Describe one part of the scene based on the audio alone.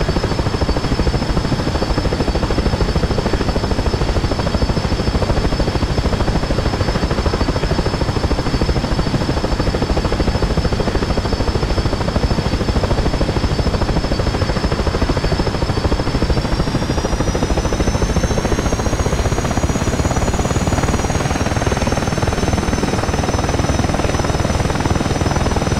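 A helicopter's turbine whines steadily, rising slightly in pitch.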